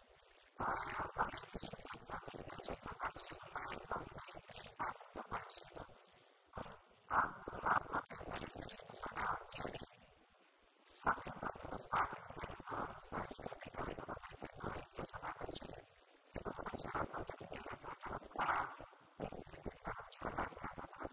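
A woman talks calmly into a microphone, heard through a loudspeaker in a large room.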